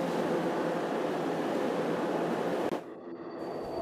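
A spacecraft's engines roar loudly.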